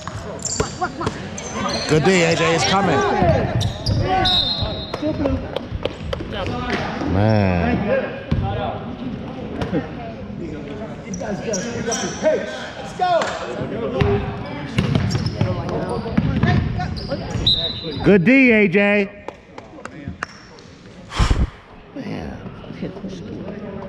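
Boys and men shout and call out in a large echoing gym.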